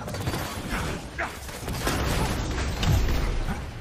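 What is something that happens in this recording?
Punches and hits thud in a fight.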